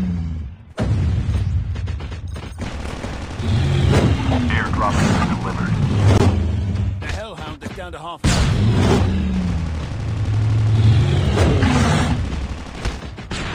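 A large beast growls and roars close by.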